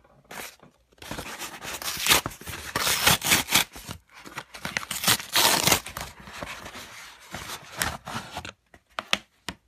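Cardboard rips and tears loudly.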